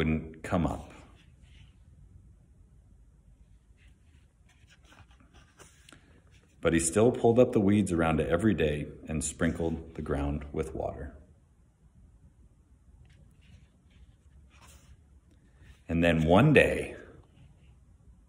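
A man reads aloud calmly, close by.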